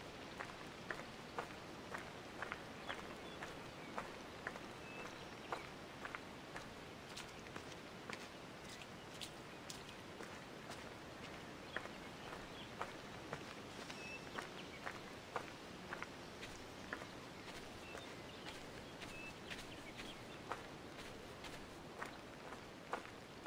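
Footsteps crunch steadily on a dirt path.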